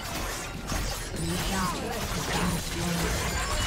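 A game chime sounds as a tower is destroyed.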